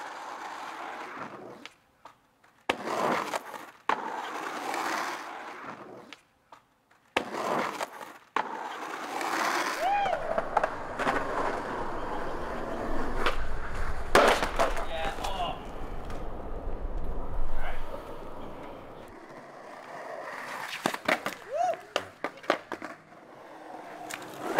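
Skateboard wheels roll and rumble over rough concrete.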